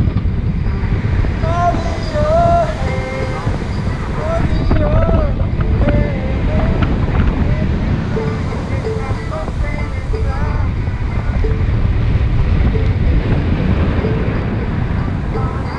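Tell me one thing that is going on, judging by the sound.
Strong wind rushes and buffets loudly against the microphone.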